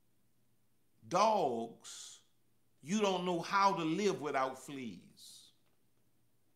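A man speaks calmly and expressively into a close microphone.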